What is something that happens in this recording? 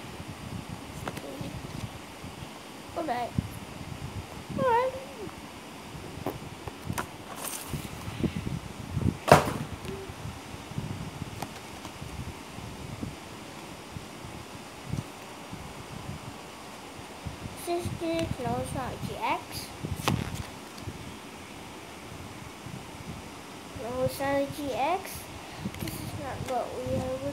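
Trading cards rustle and slap as they are shuffled.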